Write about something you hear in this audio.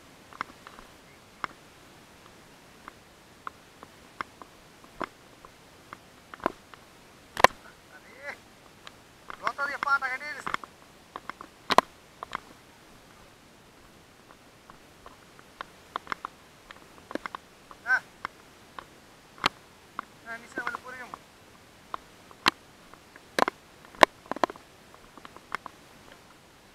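Footsteps crunch and scuff along a dirt path.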